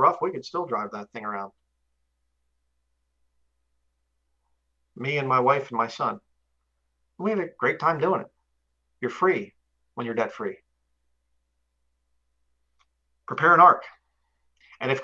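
A man speaks calmly into a microphone over an online call, pausing between phrases.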